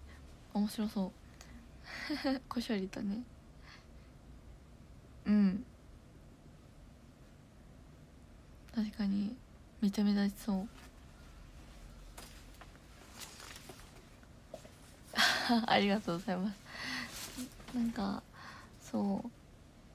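A young woman talks casually and close to a phone microphone, in short bursts with pauses.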